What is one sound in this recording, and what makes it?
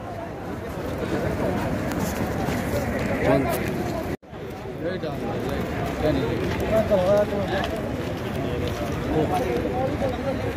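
A crowd of men talk and murmur outdoors.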